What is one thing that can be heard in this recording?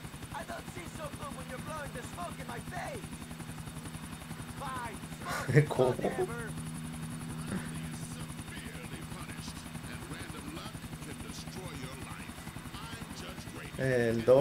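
A helicopter's rotor thumps steadily as it flies.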